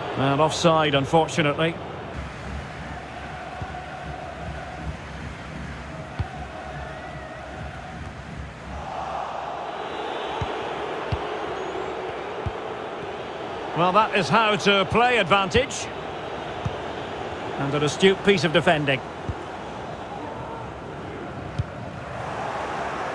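A stadium crowd murmurs and cheers.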